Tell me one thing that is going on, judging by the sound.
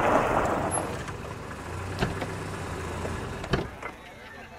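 A car engine rumbles as the car pulls up and stops.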